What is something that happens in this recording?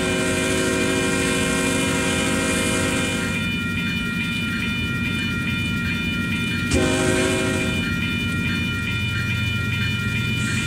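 A train rumbles as it approaches.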